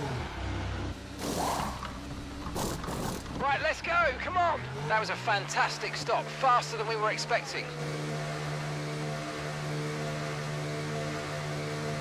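A racing car engine idles, then pulls away and holds a steady, buzzing hum.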